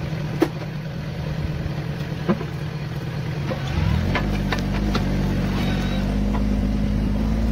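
A blade scrapes through soil and clods.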